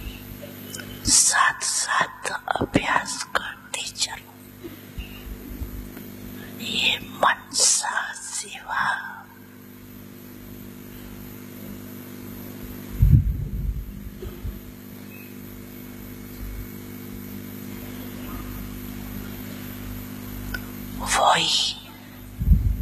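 An elderly man speaks slowly into a microphone, heard through loudspeakers.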